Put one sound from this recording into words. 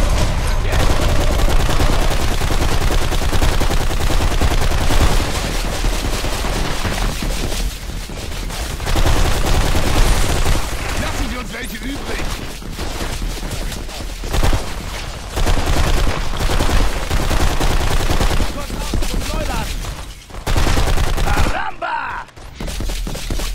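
Rapid rifle fire bursts out in loud, repeated volleys.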